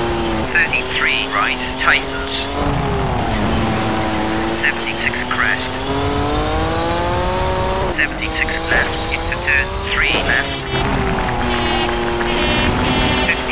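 A rally car engine revs high and shifts through gears.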